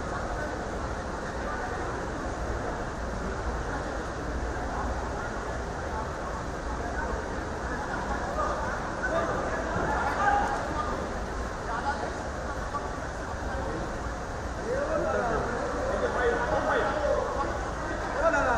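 A crowd of men chatter indoors in a low murmur.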